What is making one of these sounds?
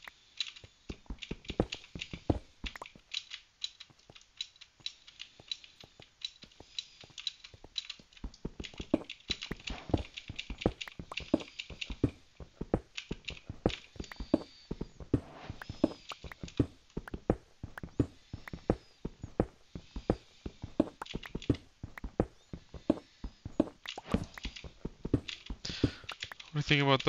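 Footsteps tap quickly on stone in a game.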